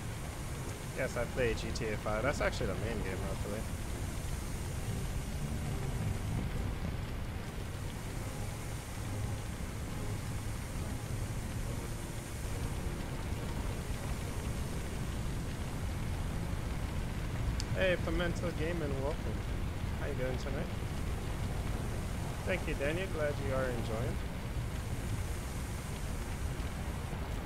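Water sprays steadily from a fire hose.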